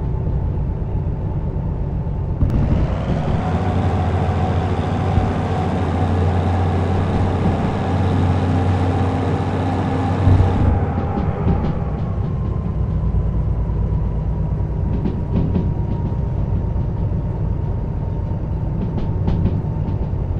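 A locomotive engine rumbles low and steadily.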